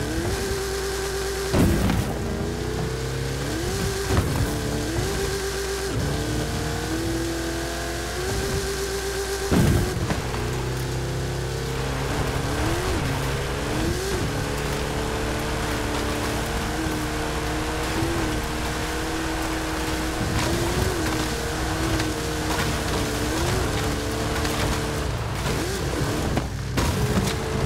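A racing engine roars and revs up and down through gear changes.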